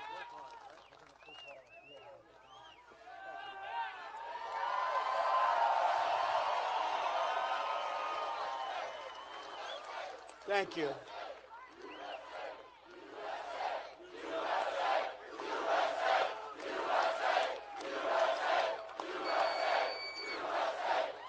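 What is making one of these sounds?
A large crowd cheers and shouts loudly in a wide open space.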